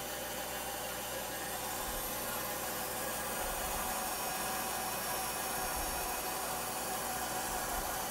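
A band saw hums steadily while cutting through wood.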